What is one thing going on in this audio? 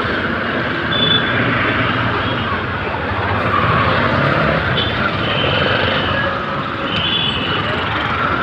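Horns honk briefly now and then.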